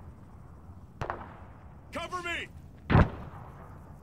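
A rifle fires single loud shots that echo outdoors.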